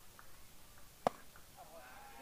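A bat cracks sharply against a ball outdoors.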